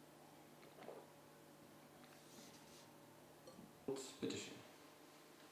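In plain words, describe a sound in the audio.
A fork scrapes and clinks against a bowl.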